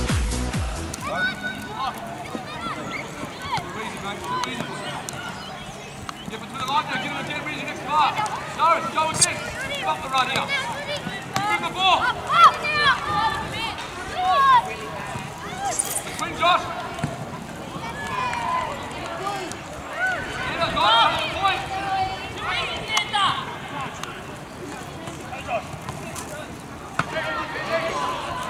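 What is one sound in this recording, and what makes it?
Young players shout to each other across an open pitch outdoors.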